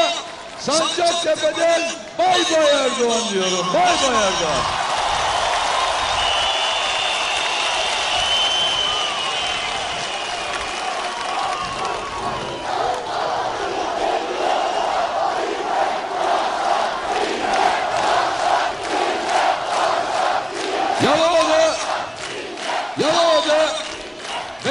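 A large outdoor crowd cheers and chants loudly.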